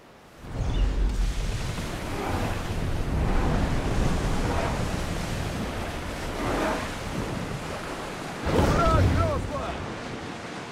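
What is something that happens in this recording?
Rough sea waves crash against a wooden ship's bow.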